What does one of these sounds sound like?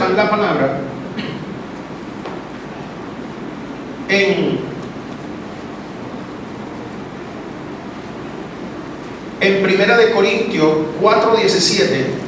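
A man speaks with feeling into a microphone, his voice carried by a loudspeaker in an echoing room.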